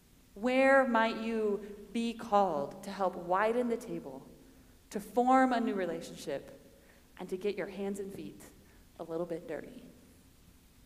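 A young woman speaks with animation through a microphone in an echoing hall.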